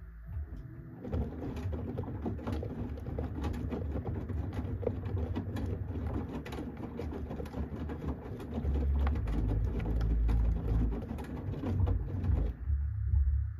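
Laundry sloshes and tumbles in a turning washing machine drum.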